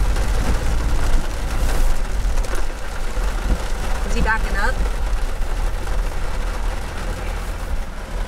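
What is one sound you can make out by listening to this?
Windshield wipers swish back and forth across the glass.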